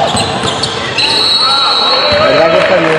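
A referee's whistle blows sharply.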